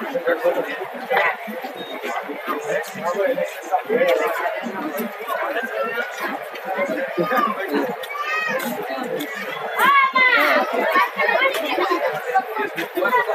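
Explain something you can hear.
Boots tramp on a paved street as a group marches past.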